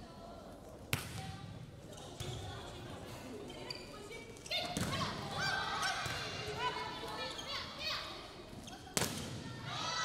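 A ball is struck with loud slaps in a large echoing hall.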